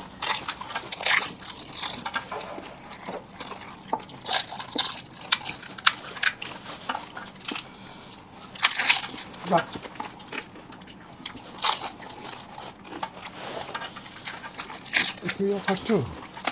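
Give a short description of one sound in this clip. Crisp puffed shells crunch and crack loudly up close.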